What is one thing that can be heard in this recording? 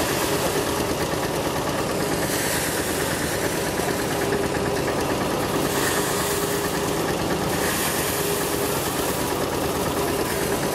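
An old threshing machine clatters and rumbles steadily.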